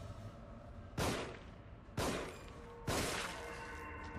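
Gunshots bang sharply several times.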